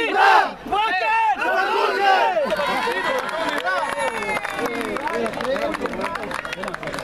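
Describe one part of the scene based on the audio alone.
A group of men sing and chant loudly together outdoors.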